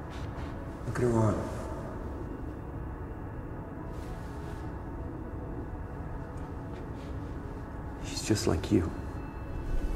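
A man speaks softly and close by.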